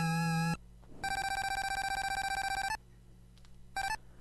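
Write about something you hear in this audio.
Rapid electronic beeps tick quickly.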